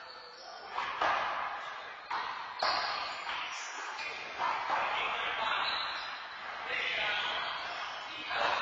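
A ball smacks hard against a wall and bounces in a large echoing hall.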